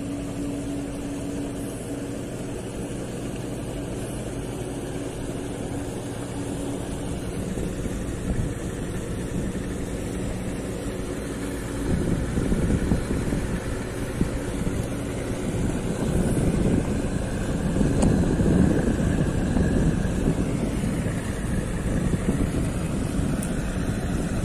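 Wind buffets outdoors over open water, growing rougher.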